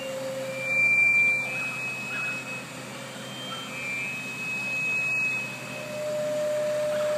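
A diesel fire truck's engine runs, powering an aerial ladder.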